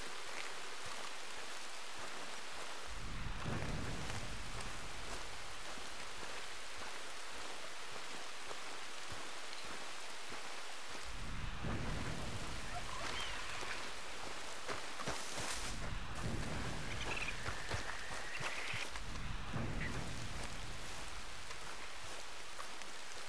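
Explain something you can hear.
Footsteps swish through tall grass.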